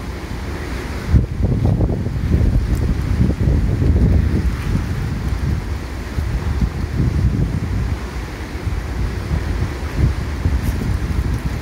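Water gushes and roars steadily from a distant dam outlet.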